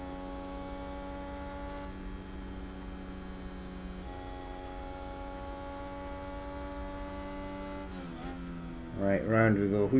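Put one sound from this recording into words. A racing car engine whines steadily at high revs, with brief changes in pitch as it shifts gears.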